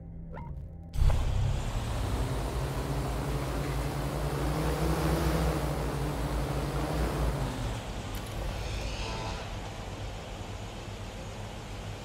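A drone's rotors hum and whir steadily overhead.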